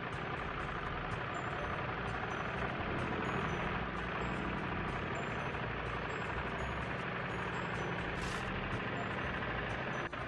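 A harvester engine rumbles steadily as it drives.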